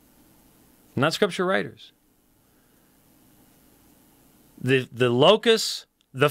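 A middle-aged man speaks expressively into a close microphone.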